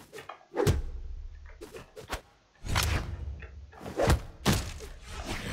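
Punchy game hits crack sharply again and again.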